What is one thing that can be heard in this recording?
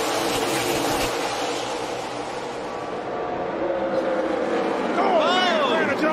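A pack of race car engines roars loudly at high speed.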